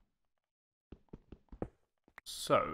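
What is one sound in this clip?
A pickaxe chips at stone with quick knocks.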